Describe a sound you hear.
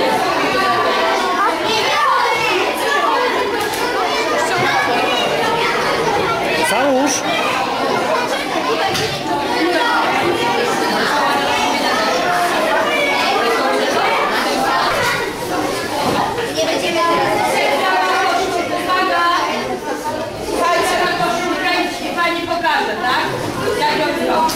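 Young girls chatter and laugh close by.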